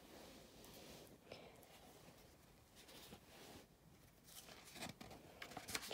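A book's pages rustle as they are turned by hand.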